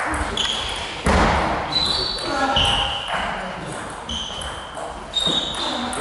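A table tennis ball clicks quickly back and forth off paddles and a table in an echoing hall.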